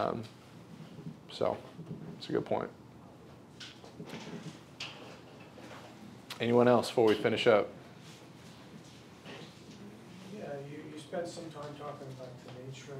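A man speaks calmly in a room with a slight echo.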